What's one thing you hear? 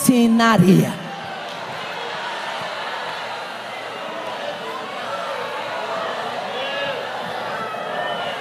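A crowd murmurs quietly in the hall.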